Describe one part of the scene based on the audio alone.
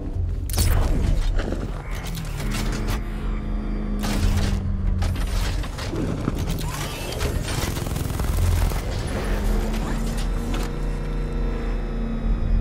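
An engine roars and revs as a vehicle speeds along.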